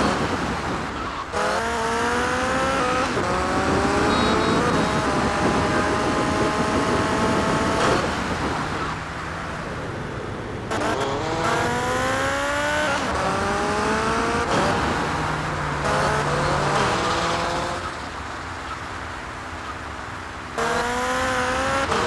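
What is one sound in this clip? A motorcycle engine revs up and down, rising in pitch through the gears.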